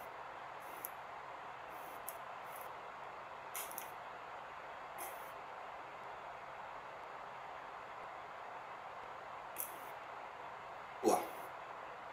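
Playing cards tap and slide softly on a table.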